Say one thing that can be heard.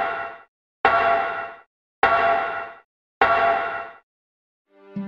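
Footsteps clang on the rungs of a metal ladder, one by one.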